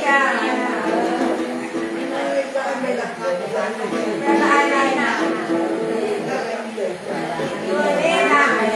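A bowed two-string fiddle plays a sustained, sliding melody.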